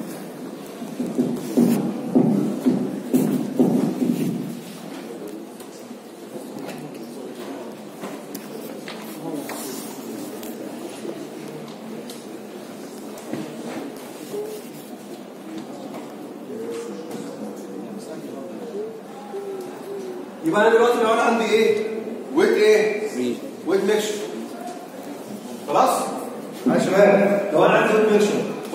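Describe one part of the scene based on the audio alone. A man lectures through a microphone.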